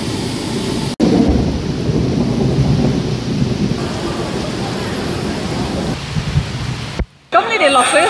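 Heavy rain pours down and splashes on the ground outdoors.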